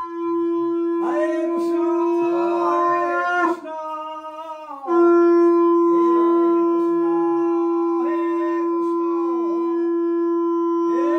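An elderly man chants in a sing-song voice close by.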